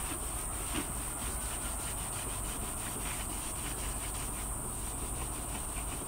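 Cloth is wrung and rustles softly.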